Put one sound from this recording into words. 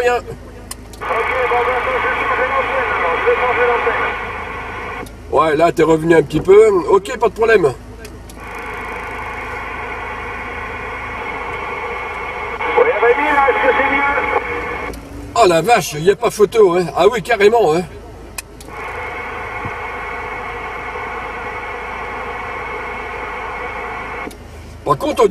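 A CB radio plays a received transmission through its small loudspeaker.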